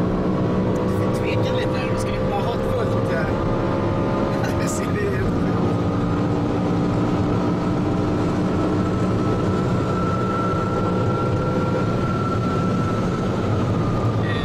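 Wind and tyre noise rush steadily around a fast-moving car.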